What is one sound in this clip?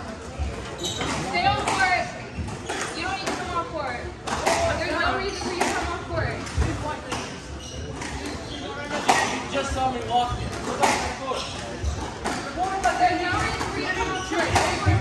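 Spectators talk nearby in a lively murmur.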